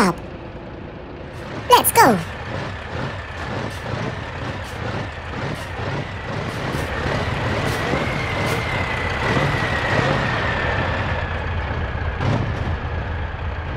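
Heavy tyres thump and knock over rough logs.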